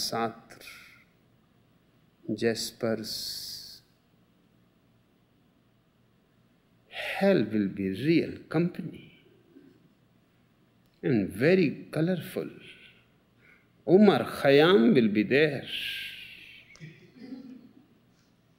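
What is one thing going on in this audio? An elderly man speaks slowly and calmly, close by, with long pauses.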